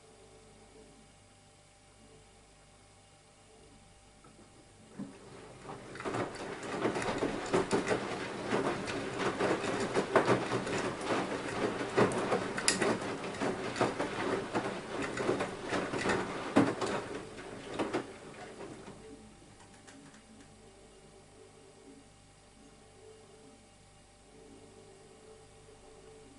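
A washing machine drum turns with a low hum.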